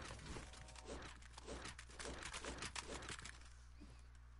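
Rapid gunshots and impacts crackle in a video game battle.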